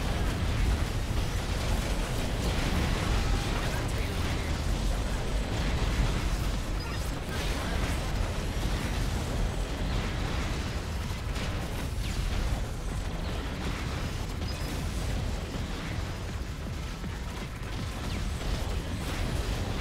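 Video game gunfire and explosions crackle rapidly.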